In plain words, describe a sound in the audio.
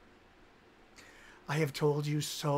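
A man takes a breath close to a microphone.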